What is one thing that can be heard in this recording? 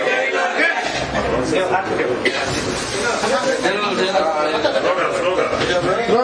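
A crowd of men talks and shouts over one another nearby.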